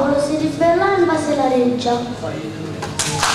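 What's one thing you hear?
A young girl speaks through a microphone in a hall that echoes.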